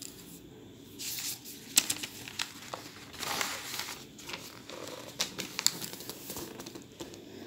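Paper rustles as a page is turned.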